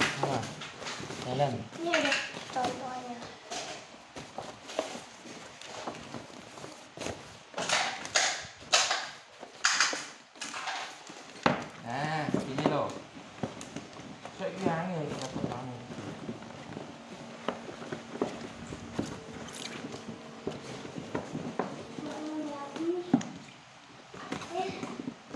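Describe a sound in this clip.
Plastic sheeting crinkles and rustles as it is handled up close.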